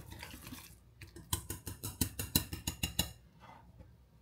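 A whisk rattles quickly against a bowl.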